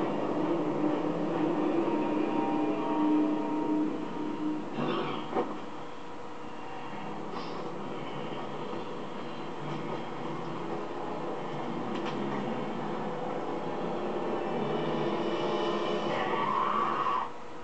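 A man snarls and groans hoarsely.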